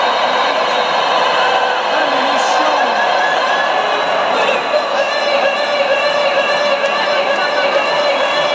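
A large crowd cheers loudly in a huge echoing arena.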